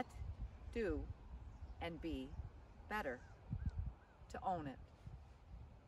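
A woman talks calmly to the listener, close to the microphone.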